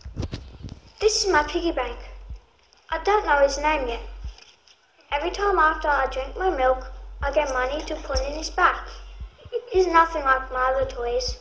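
A young boy speaks clearly and carefully, close by.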